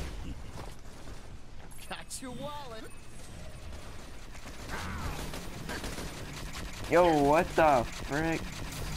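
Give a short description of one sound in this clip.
Energy blasts zap and crackle during a fight.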